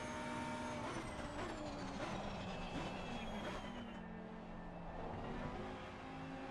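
A racing car engine drops in pitch as the car brakes hard and shifts down.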